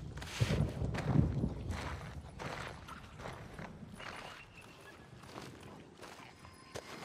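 Clothing rustles and scrapes against the ground as someone crawls.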